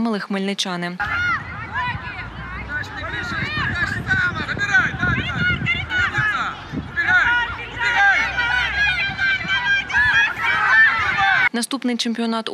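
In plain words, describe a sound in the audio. Young women shout and call out during a game outdoors.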